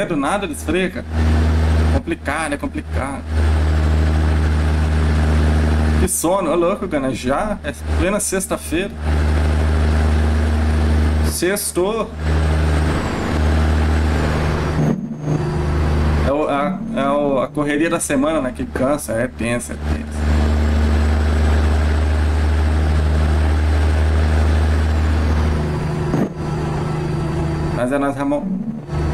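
A truck engine drones steadily at a low pitch.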